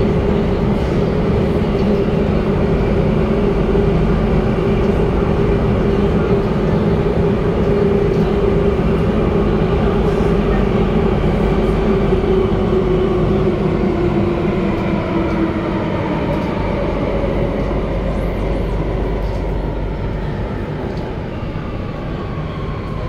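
A train rumbles loudly through a tunnel, its motor whining with a steady pitch that slowly drops as it slows.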